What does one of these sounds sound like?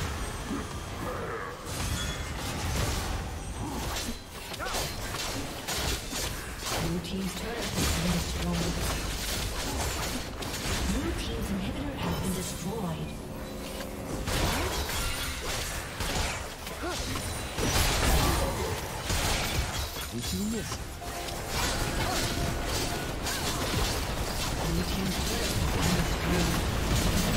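Game spell effects crackle and boom throughout a fight.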